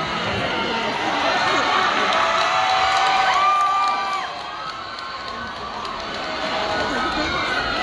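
A large audience cheers and whoops loudly in a big hall.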